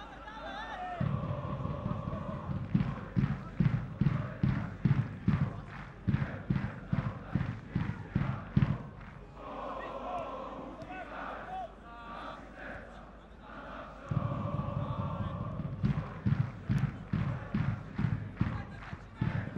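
A large crowd chants rhythmically in a stadium.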